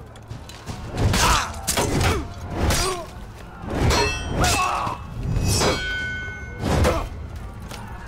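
Metal weapons clash and ring loudly.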